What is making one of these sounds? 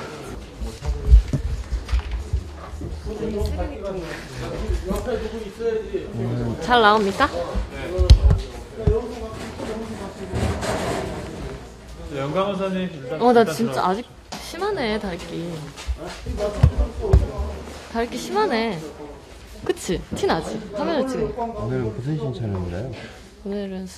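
A young woman talks playfully and close by.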